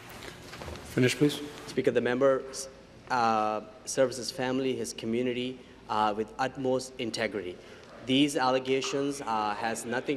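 A young man speaks calmly and clearly into a microphone.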